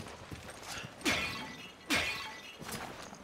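A clay pot shatters into pieces.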